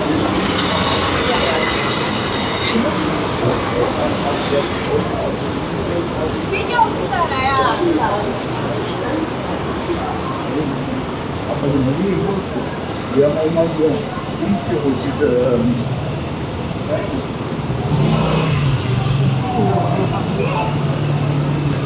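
Passers-by murmur and talk as they walk past.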